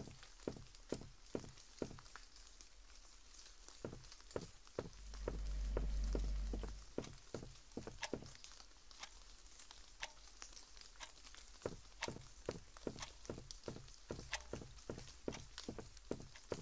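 Footsteps walk steadily across a wooden floor.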